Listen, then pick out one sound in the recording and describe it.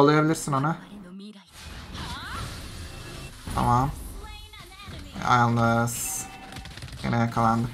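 Magic blasts and whooshes crackle during a fight.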